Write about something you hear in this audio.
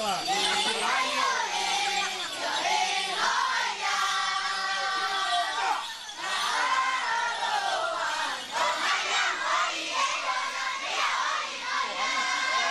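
A group of men and women sing together loudly.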